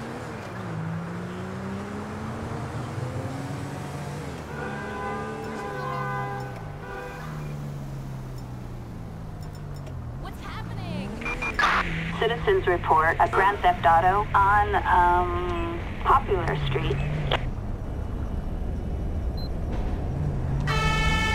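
A car engine hums and rises and falls in pitch as it drives.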